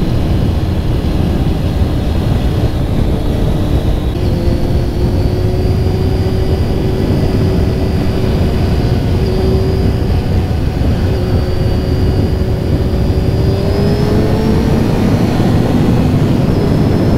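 A motorcycle engine roars steadily close by, its pitch slowly rising and falling.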